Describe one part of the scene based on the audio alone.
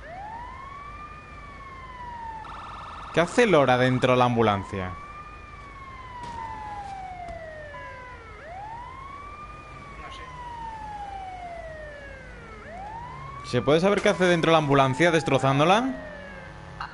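A siren wails nearby, rising and falling over and over.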